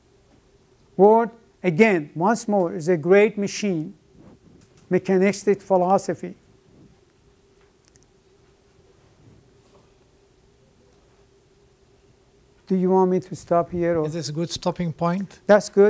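An elderly man speaks calmly, pausing between phrases.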